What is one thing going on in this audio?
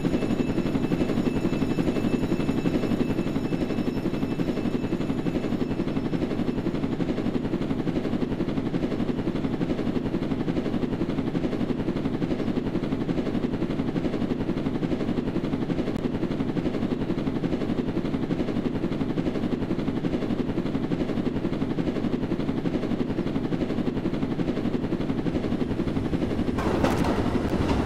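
A drone's rotors whir steadily.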